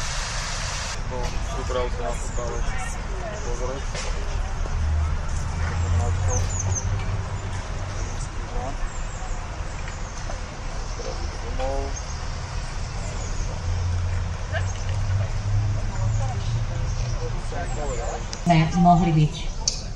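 A crowd of children and adults chatters and calls out in the distance.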